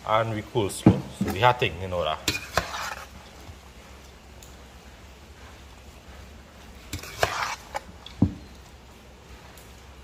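Shredded cabbage rustles as it is tossed.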